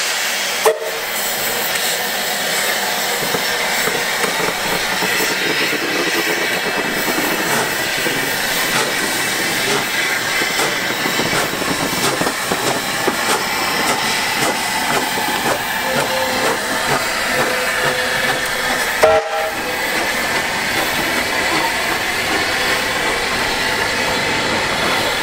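Steel wheels clank and squeal on the rails.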